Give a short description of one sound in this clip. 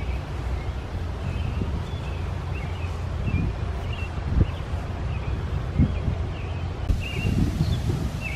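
Wind blows outdoors, rustling leaves in the trees.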